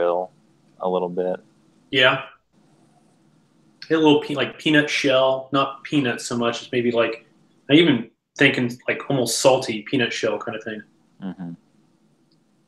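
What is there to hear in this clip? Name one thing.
A young man talks calmly over an online call.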